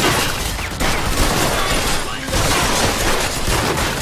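Bullets smash wood and glass with sharp splintering impacts.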